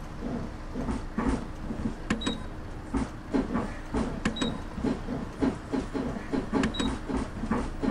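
Footsteps knock on a bus floor as passengers board.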